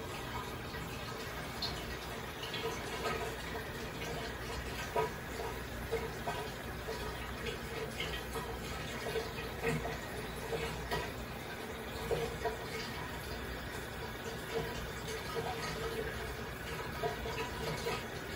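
Air bubbles gurgle and pop steadily in water.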